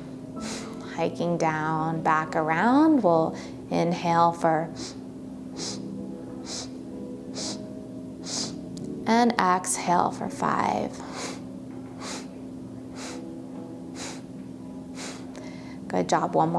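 A middle-aged woman speaks calmly and softly into a nearby microphone.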